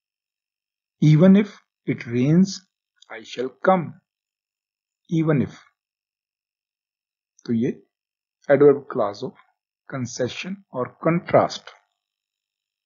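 A middle-aged man speaks calmly and clearly, close to a microphone, in short phrases with pauses.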